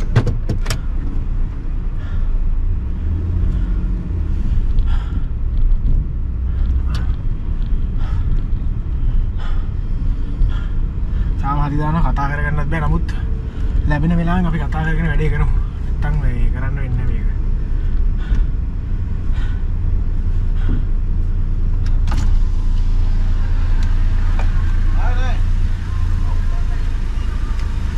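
A car engine hums low and steady inside the cabin.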